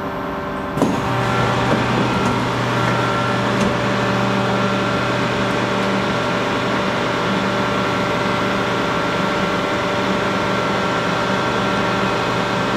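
A subway train's ventilation hums steadily inside the carriage.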